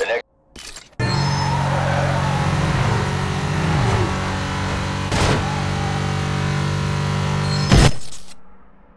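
A car engine roars steadily.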